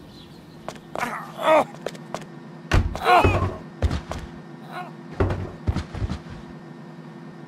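Fists thud in a short, fierce scuffle.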